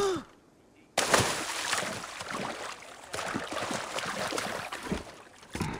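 Water splashes as a figure wades through a pool.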